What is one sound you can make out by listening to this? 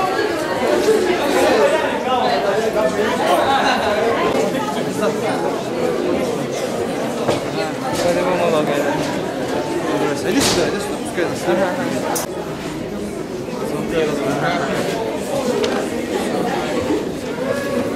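A crowd of men and women chatters loudly in a busy room.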